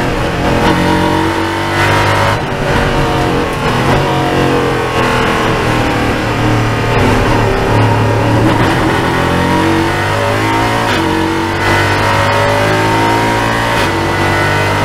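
A race car engine roars loudly up close, its pitch rising and falling as the car shifts gears.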